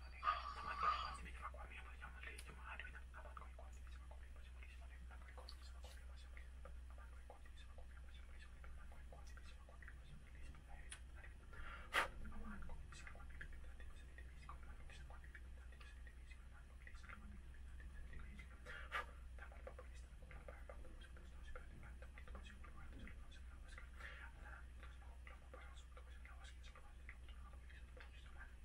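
A man murmurs softly close by.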